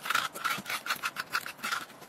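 A spoon scrapes the inside of a radish.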